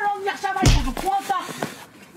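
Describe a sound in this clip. A man falls heavily onto the pavement with a thud.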